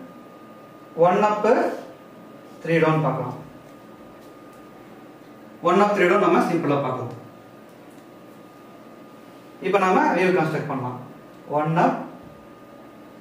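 A man speaks calmly and clearly in short phrases, close by, with pauses between them.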